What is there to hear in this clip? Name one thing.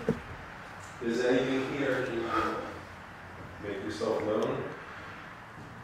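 A middle-aged man speaks quietly and tensely close by.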